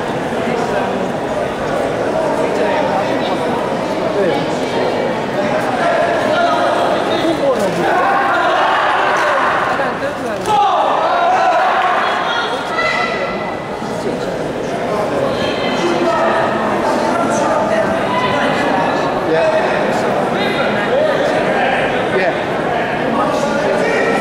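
A man referee calls out commands loudly.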